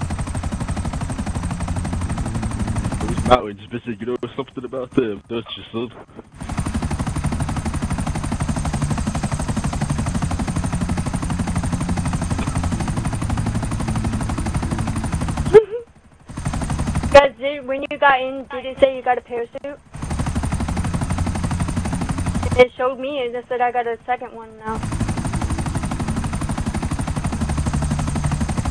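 A helicopter's rotor thumps steadily with a deep engine whine.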